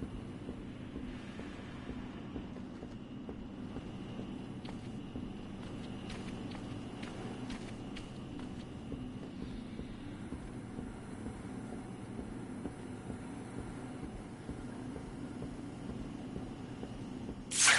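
Footsteps clank on a metal grate.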